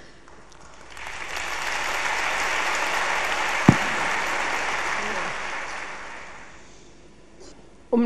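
A large audience laughs and applauds.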